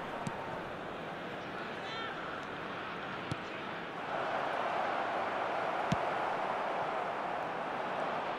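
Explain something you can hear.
A stadium crowd roars steadily, loudening partway through.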